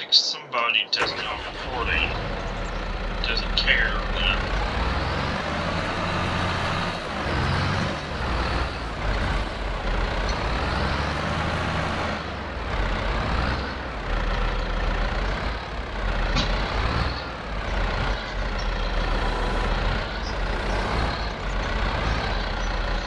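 A tractor engine starts and rumbles steadily.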